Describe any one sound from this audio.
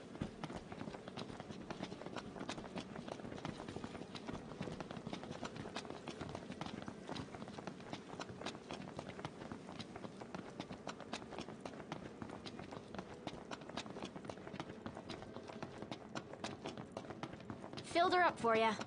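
Footsteps patter quickly on hard ground as someone runs.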